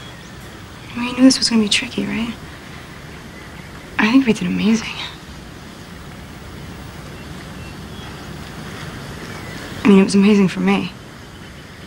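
A young woman speaks quietly and close by.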